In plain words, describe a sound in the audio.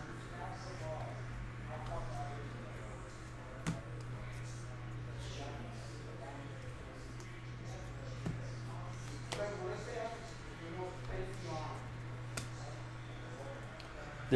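Trading cards shuffle and slide in a hand.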